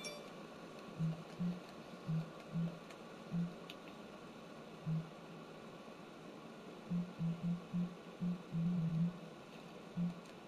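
Soft menu clicks tick as a selection moves up and down.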